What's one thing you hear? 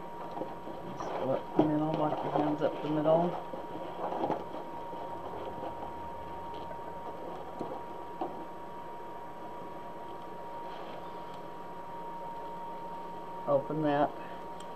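An elderly woman speaks close to a microphone.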